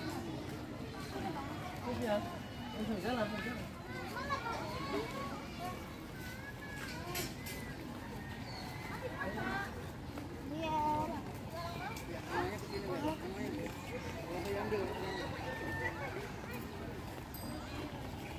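Children and adults chatter and call out nearby in the open air.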